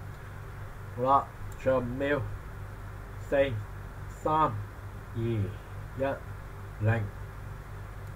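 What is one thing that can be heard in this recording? A young man speaks with animation in short bursts through a microphone.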